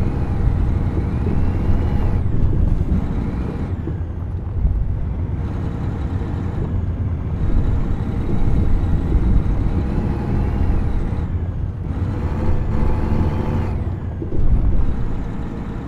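Tyres rumble and rattle over a gravel road.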